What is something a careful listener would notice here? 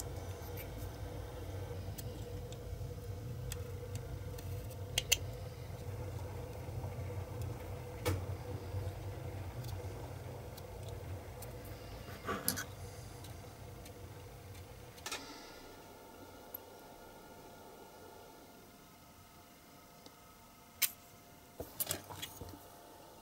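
A small plastic part clicks and taps as it is handled.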